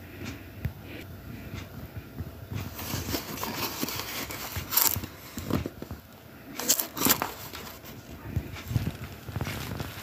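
Fingers handle a small cardboard box, rustling and tapping it.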